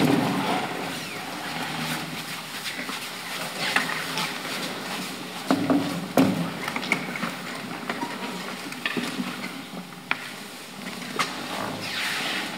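Chairs and tables knock and scrape on a wooden stage.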